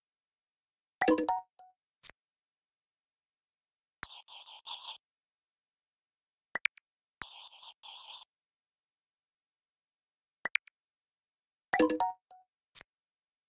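A handheld game's buzzer sounds for a wrong answer.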